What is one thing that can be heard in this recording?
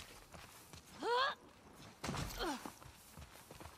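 A horse whinnies nearby.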